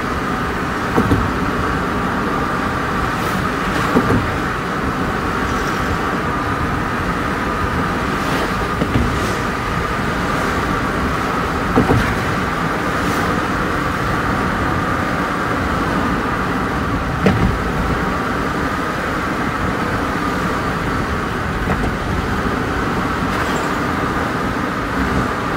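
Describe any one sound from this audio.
Passing cars and trucks whoosh by close alongside.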